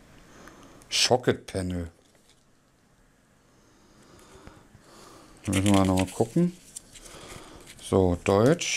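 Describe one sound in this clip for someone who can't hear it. A man speaks calmly and close by in short bursts.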